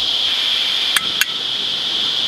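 A camping stove igniter clicks.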